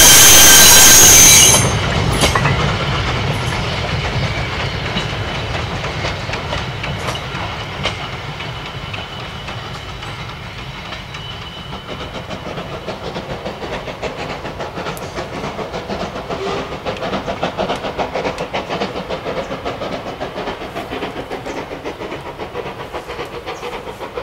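A train's wheels clank and rattle over the rails.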